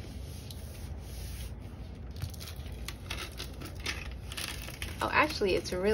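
A plastic sheet rustles and crinkles as it is rolled up.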